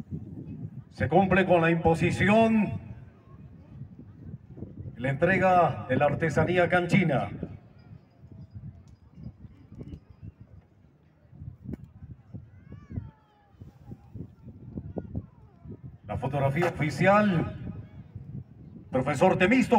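A man speaks loudly through a loudspeaker outdoors, in short bursts.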